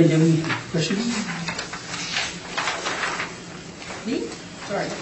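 A man speaks calmly, heard from across a room.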